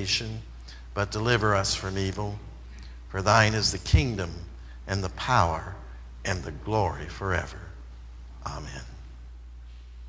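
A man prays aloud in a calm, steady voice nearby.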